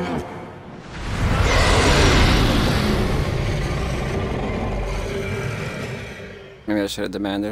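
A huge wave roars and surges.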